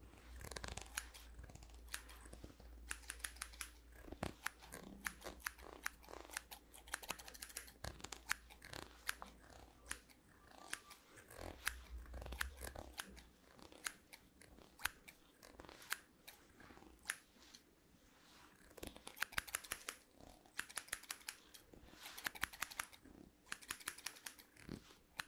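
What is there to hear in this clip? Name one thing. A comb scrapes against a fuzzy microphone cover.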